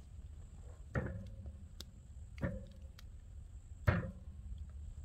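Wood knocks on metal as sticks are laid on a fire.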